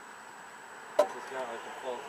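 A metal part on a mower engine clicks once.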